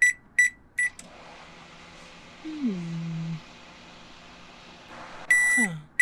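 A microwave hums steadily as it runs.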